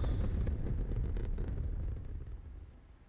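A jet engine roars loudly.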